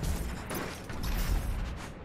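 A fast whoosh rushes past as someone dashes forward.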